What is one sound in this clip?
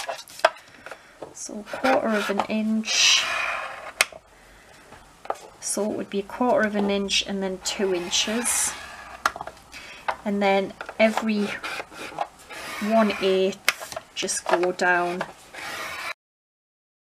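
A tool scrapes along paper in short strokes.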